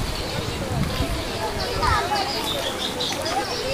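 A crowd of men and women chatter at a distance.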